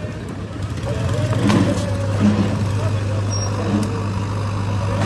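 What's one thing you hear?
An excavator engine hums steadily nearby.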